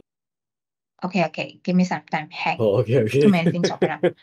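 A young man speaks over an online call.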